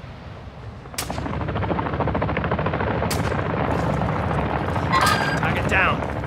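A helicopter's rotor thuds loudly nearby.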